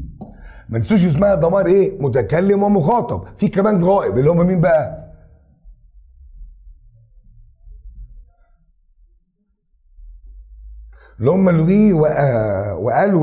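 An elderly man speaks clearly and calmly into a microphone, with pauses.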